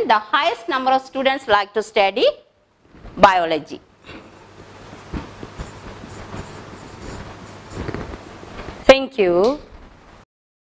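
A woman speaks clearly and with animation, close to a microphone, in short phrases with pauses.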